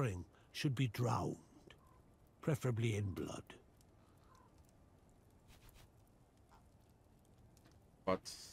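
A man talks into a close microphone, calmly and casually.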